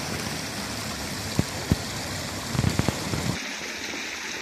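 A fountain splashes steadily nearby, outdoors.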